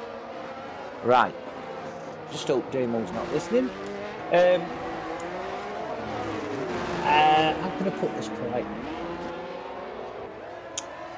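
Racing car engines whine loudly, rising and dropping in pitch.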